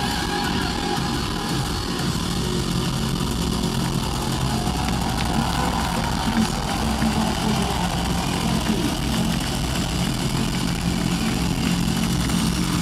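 Drums pound in a steady beat.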